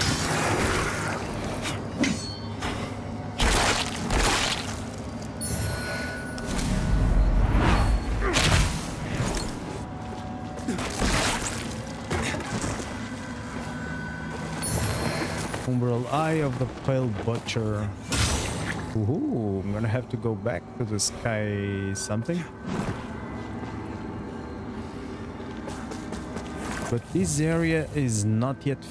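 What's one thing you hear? Heavy footsteps crunch over brittle ground.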